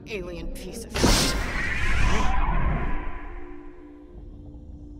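A loud magical burst whooshes and rumbles, then fades.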